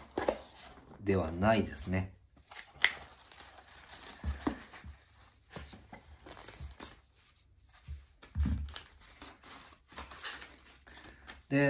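Wrapping paper crinkles as it is pulled away.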